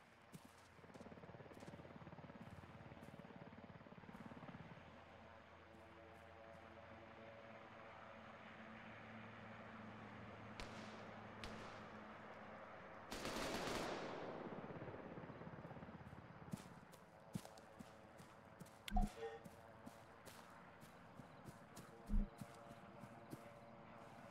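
Footsteps rustle through undergrowth.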